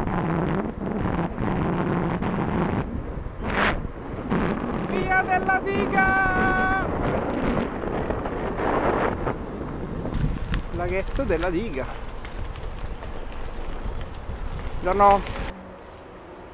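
Wind rushes loudly past while riding.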